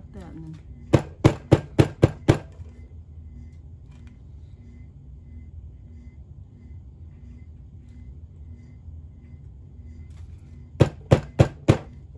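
A plastic paint bottle is shaken hard in quick bursts.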